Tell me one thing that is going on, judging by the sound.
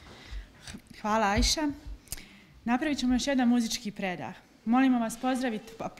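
A woman speaks clearly into a microphone.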